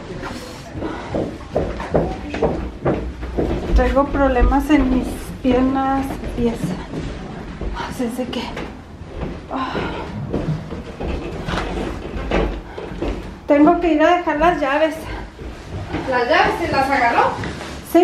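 Footsteps thud on carpeted stairs.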